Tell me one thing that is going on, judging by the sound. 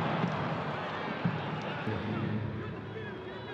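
A young man calls out to teammates outdoors.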